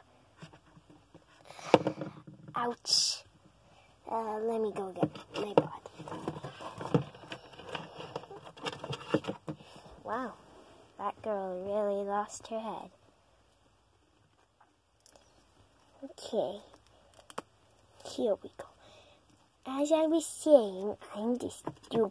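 Small plastic dolls tap and knock lightly against a hard surface.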